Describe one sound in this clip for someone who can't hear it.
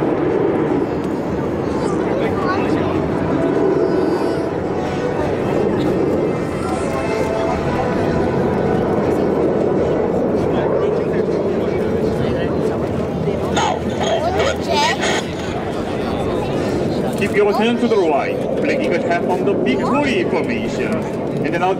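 Jet engines roar steadily overhead as a formation of planes flies past.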